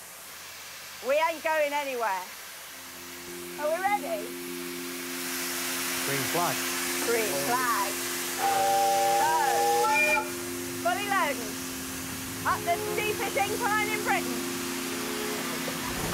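A woman speaks cheerfully nearby.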